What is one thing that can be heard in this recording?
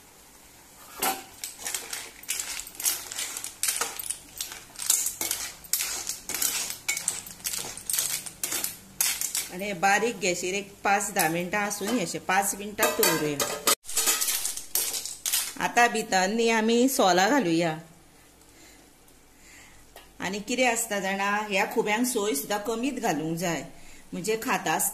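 A metal spoon scrapes and clinks against a pan.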